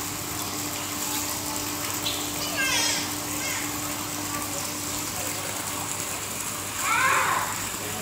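Water splashes and laps in a pool.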